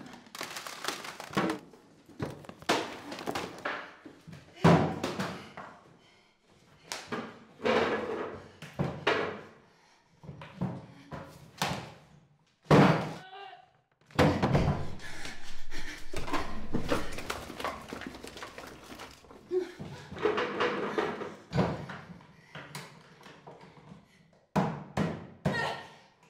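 Objects clatter and knock as shelves are rummaged through quickly.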